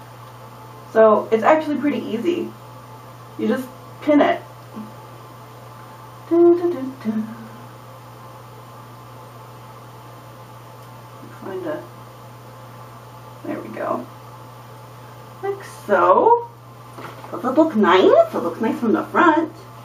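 A young woman talks calmly close by, in short bursts with pauses.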